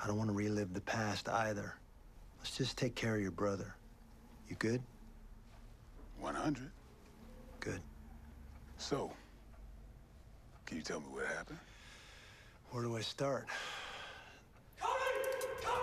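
A second man answers in a deep, calm voice.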